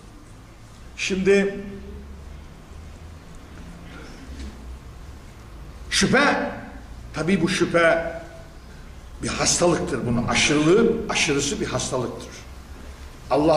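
An elderly man speaks with animation into a microphone, in bursts with pauses.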